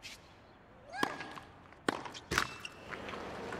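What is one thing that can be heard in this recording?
A tennis racket strikes a ball several times in a quick rally.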